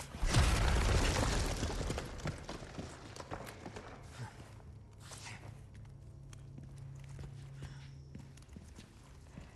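Footsteps scuff and crunch on a stone floor.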